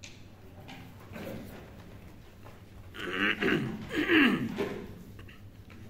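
An elderly man speaks briefly, close by.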